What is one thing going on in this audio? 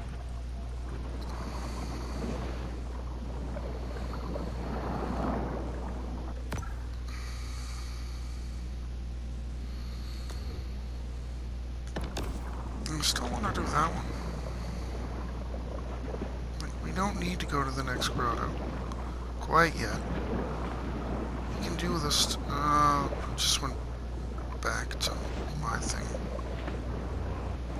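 A low underwater rumble drones steadily.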